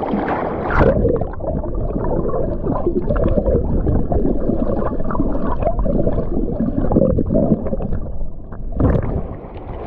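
Water bubbles and rumbles, heard muffled from underwater.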